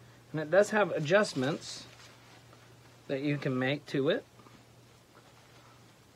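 Leafy fabric rustles as it is handled.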